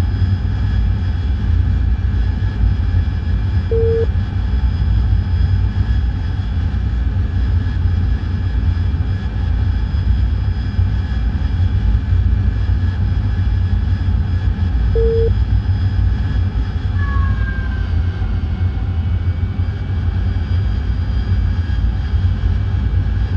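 A jet engine rumbles low and steadily.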